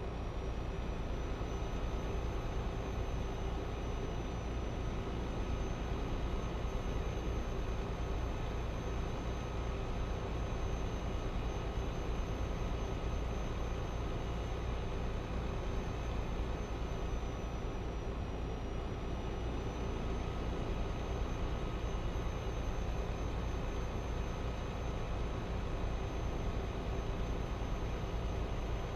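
Tyres roll steadily on a road.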